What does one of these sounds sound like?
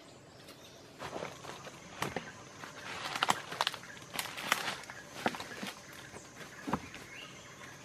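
Dry leaves crunch and rustle under climbing feet.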